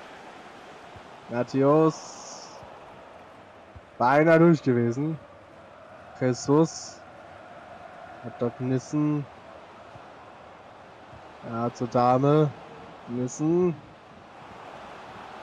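A large crowd murmurs and hums steadily in a stadium.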